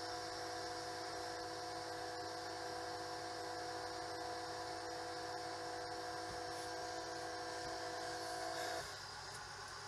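A truck engine idles with a steady hum.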